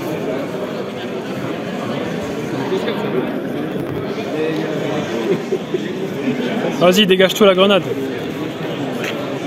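Playing cards shuffle and slap softly together.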